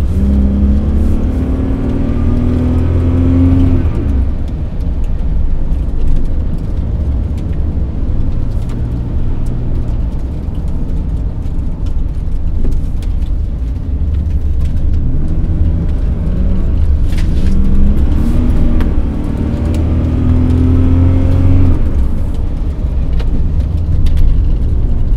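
Tyres roll over a snowy road.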